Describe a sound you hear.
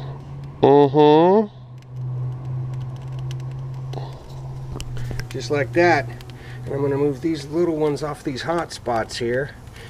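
Pieces of meat tap softly onto a metal grill grate.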